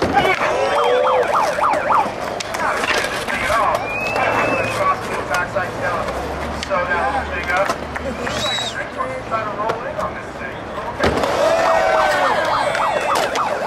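Skateboard wheels roll and grind on concrete.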